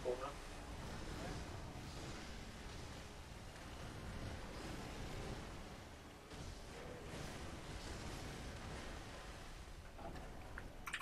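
Water splashes heavily as a huge beast thrashes through it.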